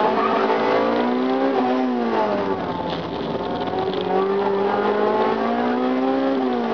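Tyres squeal on tarmac.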